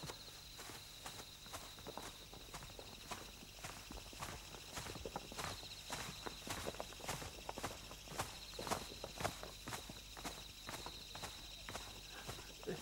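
Leaves and twigs rustle and snap as people push through dense undergrowth.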